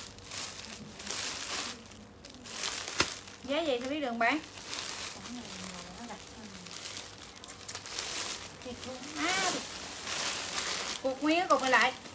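Plastic bags rustle and crinkle as they are handled close by.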